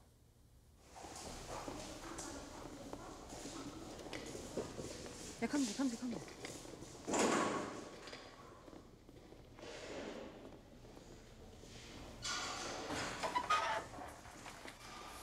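Footsteps echo along a hallway.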